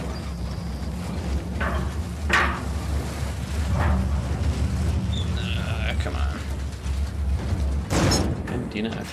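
A dumpster scrapes loudly as it is pushed across the ground.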